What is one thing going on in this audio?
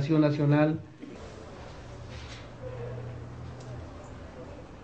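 A sheet of paper rustles in a hand.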